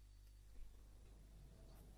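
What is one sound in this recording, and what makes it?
A finger presses an elevator button with a soft click.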